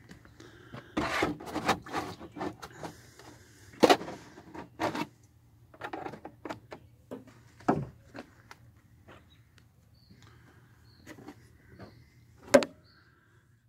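A plastic jug crackles and knocks as a hand grips it.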